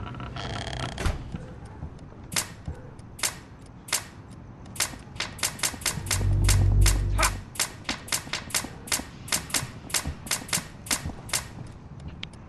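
A toy gun fires rapid sharp shots.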